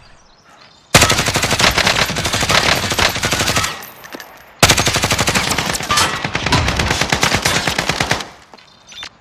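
A video game assault rifle fires rapid automatic bursts.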